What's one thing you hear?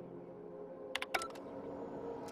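A lock clicks open with a short electronic chirp.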